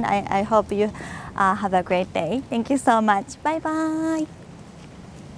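A young woman speaks brightly into a clip-on microphone, close by.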